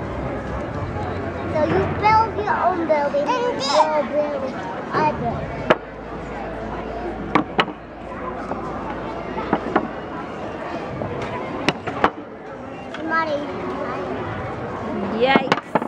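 Wooden blocks knock and clack together close by.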